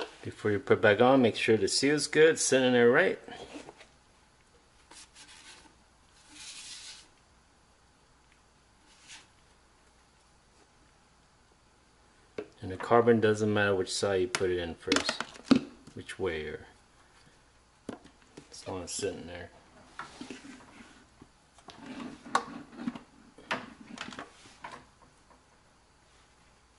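Plastic parts knock and scrape together.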